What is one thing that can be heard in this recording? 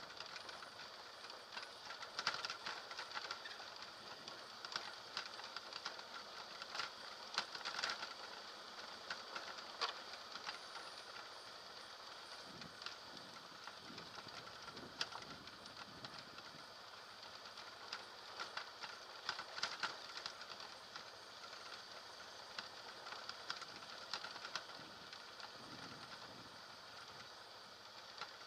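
A motorcycle engine hums steadily while riding.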